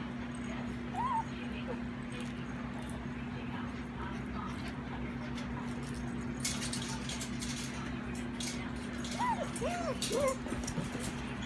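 Puppies yelp and whine in short high cries.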